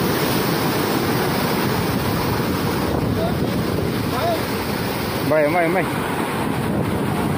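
Waves crash and surge loudly over rocks.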